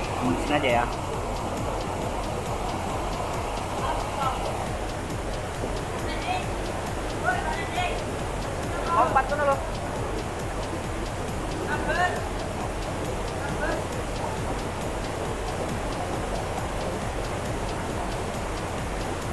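A waterfall rushes steadily outdoors.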